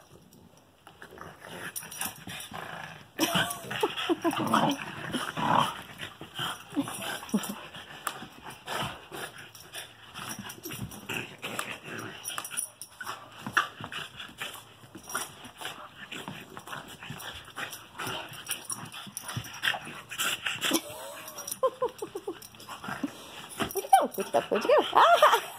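Dog paws scrabble and thump on a rug.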